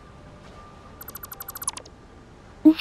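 A handheld device gives a rapid series of rising electronic ticks.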